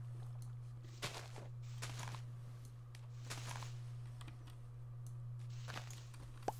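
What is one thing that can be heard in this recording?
A tool digs and breaks blocks of earth with soft, crunchy thuds.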